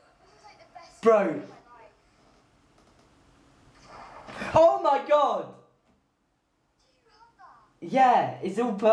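A young man talks and exclaims with animation close to a microphone.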